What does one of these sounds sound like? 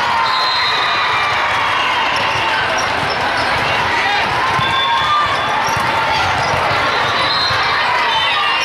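A crowd of people chatter and call out in a large echoing hall.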